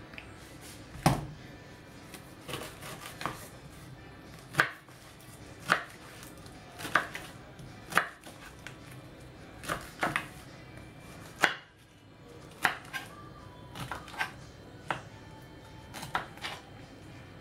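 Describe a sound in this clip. A knife knocks sharply on a wooden board.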